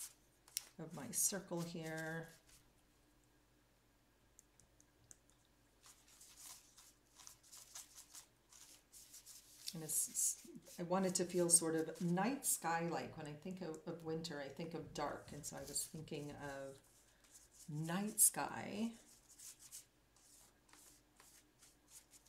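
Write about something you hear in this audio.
A paintbrush scrapes and dabs on paper.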